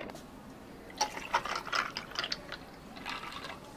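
Water pours into a glass.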